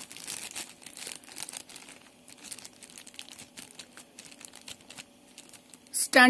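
Plastic wrapping crinkles as it is handled.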